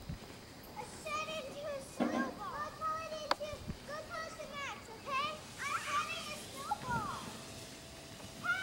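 A child squeals and shouts excitedly in the distance.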